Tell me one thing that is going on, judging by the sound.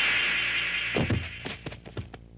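A body thuds onto the ground.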